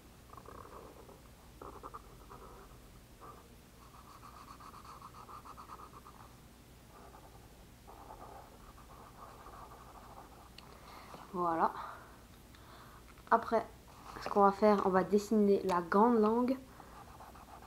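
A felt marker squeaks and scratches on paper.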